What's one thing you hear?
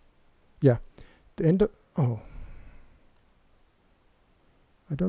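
A young man speaks calmly into a close microphone, in short phrases.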